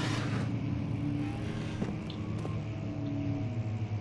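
A small cabinet door creaks open.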